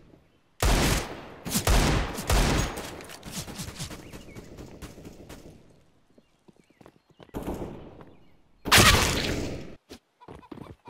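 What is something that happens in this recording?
Gunshots fire in quick bursts and echo off walls.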